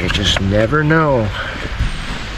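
A man speaks briefly close by.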